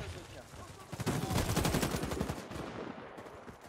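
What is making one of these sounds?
An automatic rifle fires in a burst.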